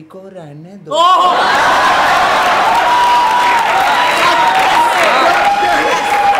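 A group of young men laugh loudly together.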